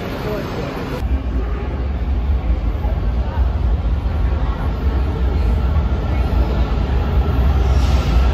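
A distant train approaches with a low roar.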